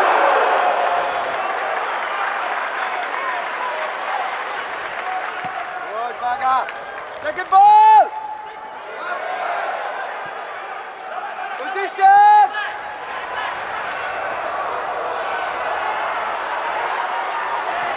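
A stadium crowd murmurs and cheers in the open air.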